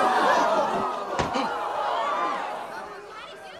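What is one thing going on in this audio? A crowd of young people chatters and murmurs loudly nearby.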